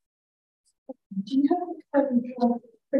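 A woman speaks with animation, heard through an online call.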